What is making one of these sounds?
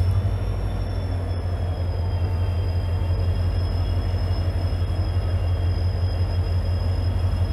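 A train's wheels roll and clatter slowly over the rails.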